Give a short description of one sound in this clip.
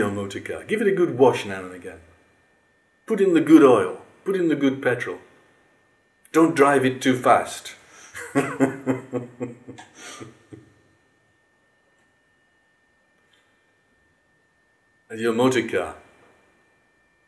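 An older man speaks with animation close to the microphone.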